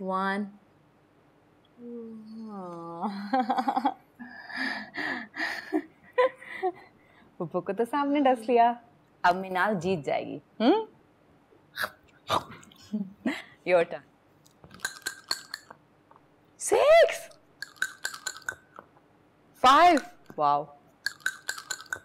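A little girl talks and laughs excitedly, close by.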